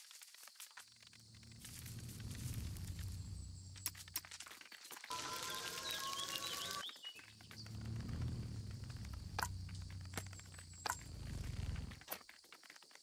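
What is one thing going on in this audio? Footsteps crunch over gravel and dry ground.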